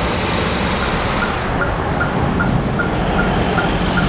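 Trucks idle with rumbling engines.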